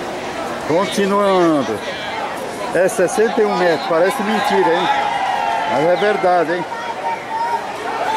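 A man shouts with excitement close by.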